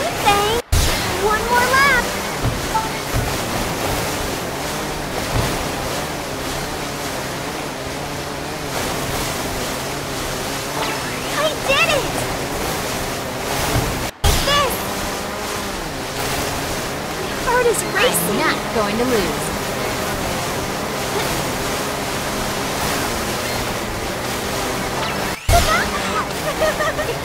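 Water sprays and splashes under a jet ski.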